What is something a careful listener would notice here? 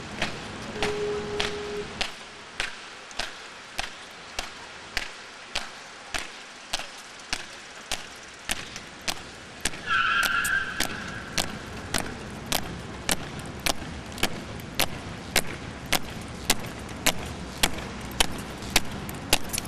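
Soldiers' boots strike stone pavement in a steady marching rhythm outdoors.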